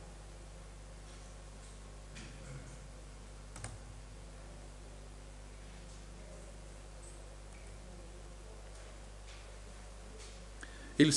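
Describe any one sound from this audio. An elderly man speaks calmly and quietly through a microphone.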